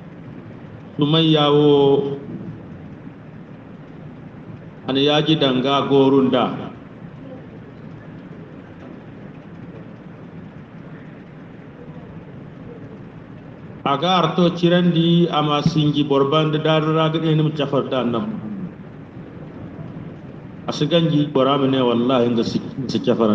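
A man speaks into microphones in bursts, heard through a loudspeaker with pauses between phrases.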